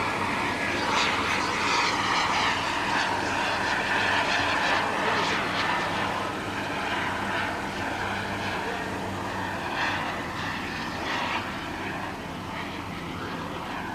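A jet engine roars steadily overhead, slowly fading.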